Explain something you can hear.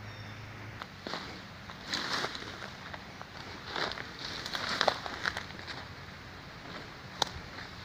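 Footsteps rustle through leaves and undergrowth.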